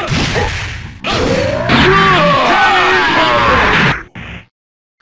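Heavy punches land with sharp thuds.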